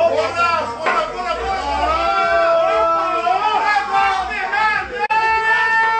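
A crowd of men and women shout and sing loudly close by.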